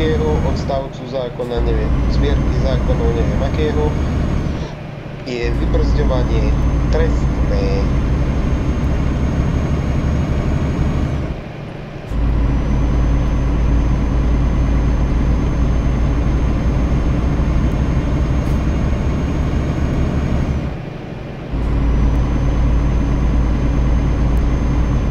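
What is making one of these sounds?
A truck engine drones steadily from inside the cab, dropping away briefly at each gear change.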